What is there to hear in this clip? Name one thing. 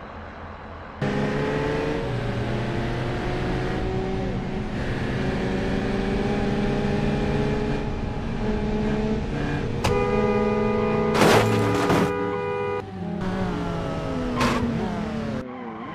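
A car engine revs and rises in pitch as the car speeds up.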